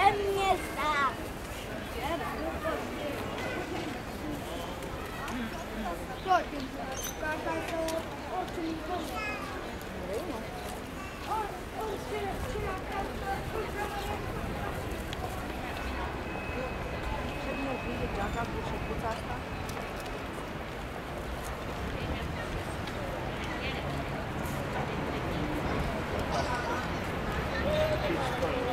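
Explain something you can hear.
A crowd of people chatter and talk outdoors on a busy street.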